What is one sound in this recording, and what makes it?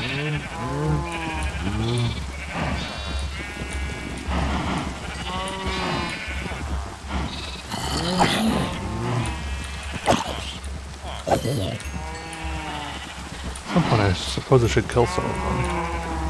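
Cows moo nearby.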